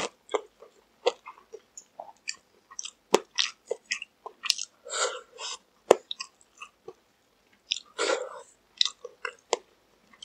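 Fried chicken skin crackles as it is torn by hand.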